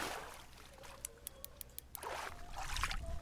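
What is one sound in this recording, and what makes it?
A fishing reel clicks as it winds in line.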